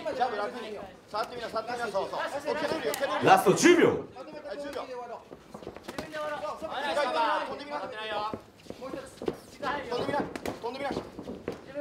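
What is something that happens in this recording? Gloved punches thud against gloves and bodies.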